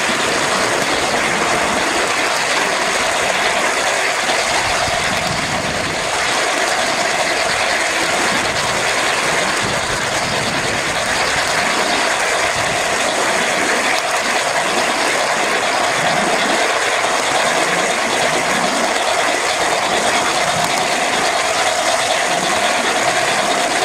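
A roller coaster train rattles and rumbles loudly along its wooden track.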